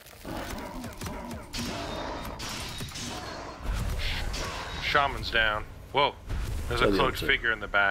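A weapon strikes creatures with sharp hits.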